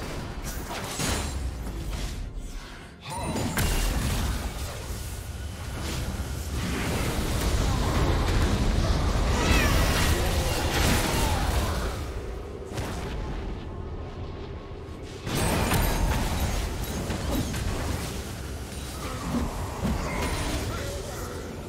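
Game spell effects whoosh and crackle as figures fight.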